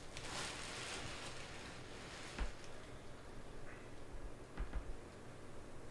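Cards tap softly on a table.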